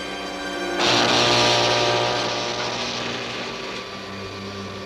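A loud rumbling crash booms and slowly fades.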